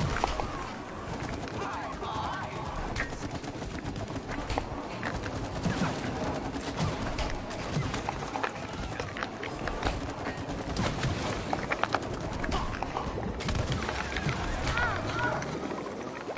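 A young woman talks with animation over a microphone.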